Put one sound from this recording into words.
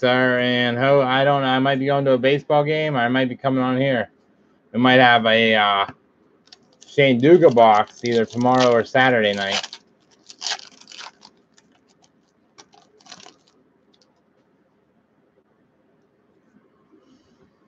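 Trading cards rustle as they are shuffled.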